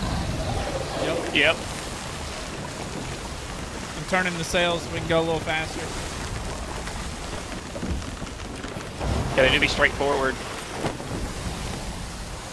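Stormy sea waves crash and roar steadily.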